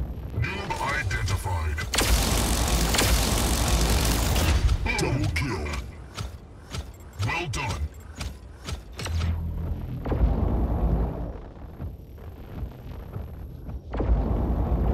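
Heavy robot footsteps clank and thud.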